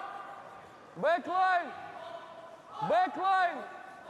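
A young man shouts loudly nearby.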